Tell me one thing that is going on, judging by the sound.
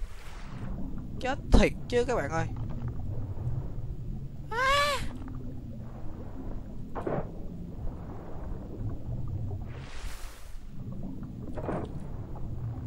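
Water laps and splashes close by.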